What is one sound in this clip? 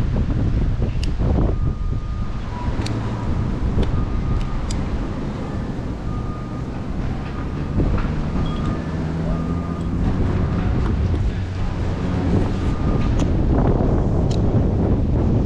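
Metal climbing gear clinks and clicks.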